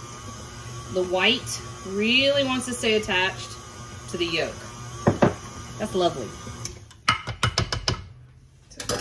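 A spatula scrapes and knocks against a metal bowl.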